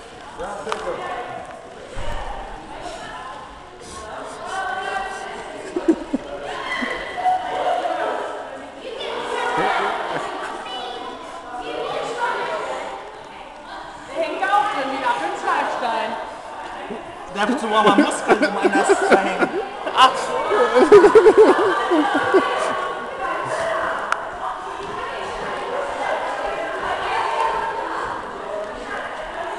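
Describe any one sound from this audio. A teenage boy talks and laughs with animation close by, in an echoing hall.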